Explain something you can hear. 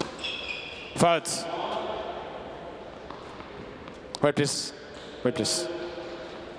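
A young man grunts loudly as he hits the ball.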